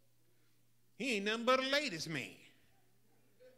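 An older man speaks with feeling into a microphone, in a drawn-out, sung-like phrase.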